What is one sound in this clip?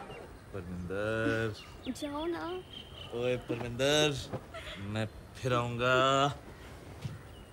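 A young man talks playfully up close.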